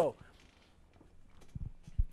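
A young man speaks into a microphone.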